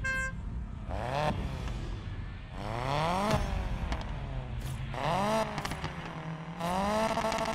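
A car engine revs up and down in quick bursts.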